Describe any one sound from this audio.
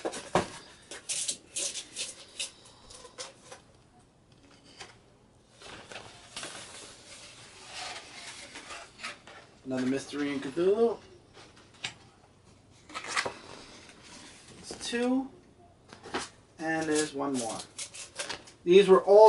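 Large paper prints rustle and crinkle as they are handled.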